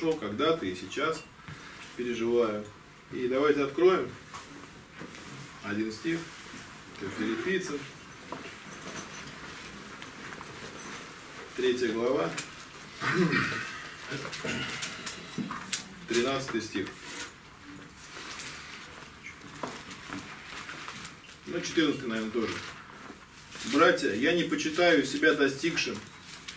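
A man speaks calmly in a room with some echo, with pauses in between.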